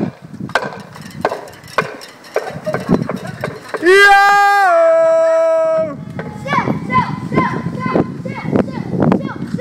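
A bicycle rattles over cobblestones.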